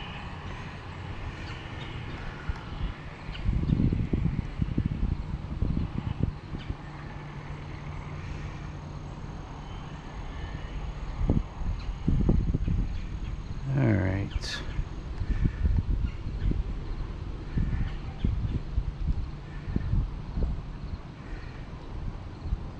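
Wind blows in gusts outdoors, rumbling against the microphone.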